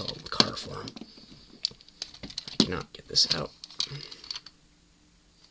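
Plastic toy parts click and rattle as hands handle them.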